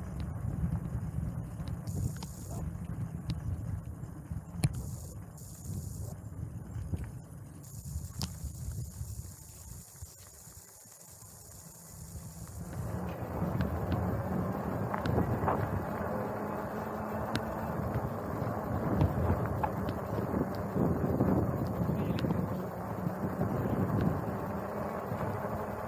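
Wind rushes and buffets outdoors, growing louder partway through.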